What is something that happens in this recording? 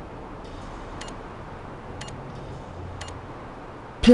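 Short electronic beeps count down, one per second.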